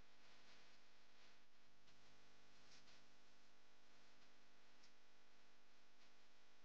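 A marker squeaks and rubs softly across a board in short strokes.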